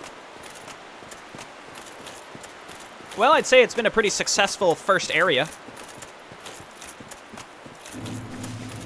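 Armoured footsteps run quickly over stone and earth.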